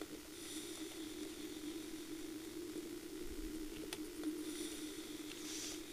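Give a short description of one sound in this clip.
Soft, steady ambient game music drones throughout.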